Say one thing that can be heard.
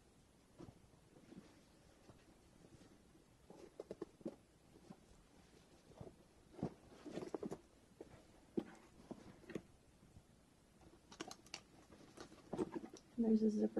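Fabric rustles and crinkles as a bag is handled.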